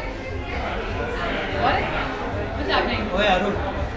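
A young woman claps her hands softly.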